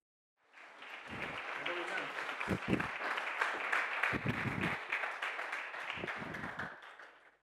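A woman's heels knock on a stage as she walks.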